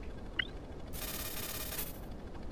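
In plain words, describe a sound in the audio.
A soft chime rings as a menu opens.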